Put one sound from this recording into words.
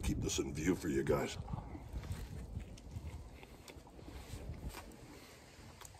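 A man bites into a burger and chews noisily close by.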